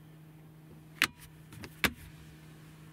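A hand knocks sharply on a plastic lid.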